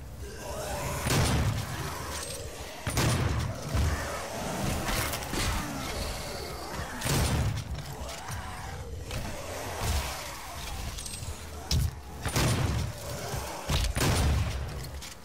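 Heavy gunshots boom again and again.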